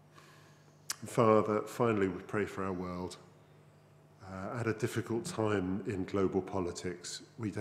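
A man speaks slowly and thoughtfully into a microphone in an echoing room.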